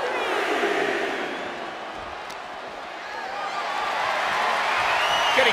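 A crowd cheers and roars loudly, swelling toward the end.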